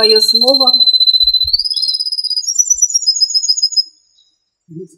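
A caged bird sings a long, high trill.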